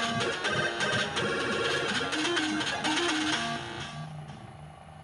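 A home computer's loading tones warble and screech loudly.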